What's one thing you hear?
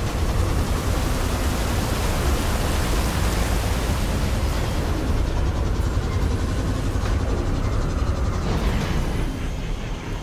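A hovering craft's engine roars steadily as it flies low over the ground.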